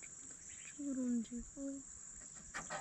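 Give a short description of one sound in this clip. A child speaks briefly with animation, close by.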